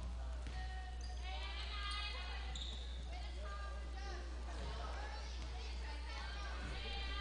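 Young girls call out and shout to each other in an echoing gym.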